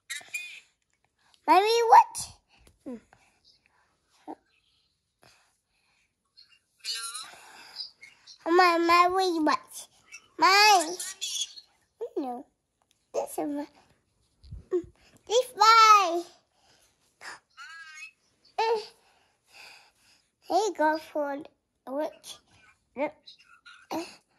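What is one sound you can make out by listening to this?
A young child babbles and squeals close by, in short bursts.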